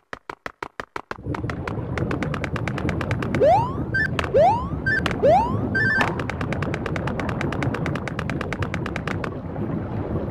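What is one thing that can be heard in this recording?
Quick game footsteps patter as a character runs.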